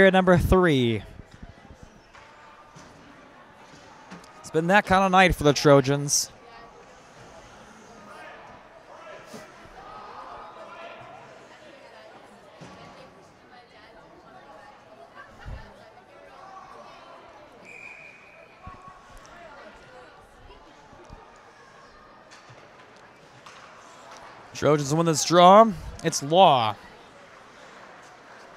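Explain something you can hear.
Skates scrape and glide on the ice.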